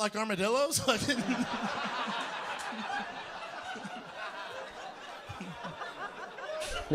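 An audience laughs in a large room.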